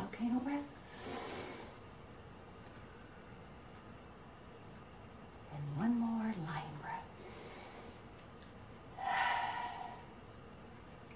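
A middle-aged woman breathes in and out deeply.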